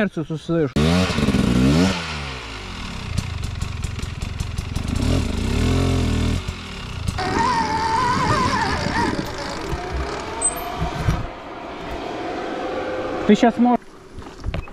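A dirt bike engine revs and roars loudly, rising and falling in pitch.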